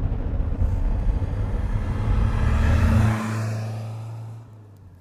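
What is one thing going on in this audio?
A car passes by on a road outdoors.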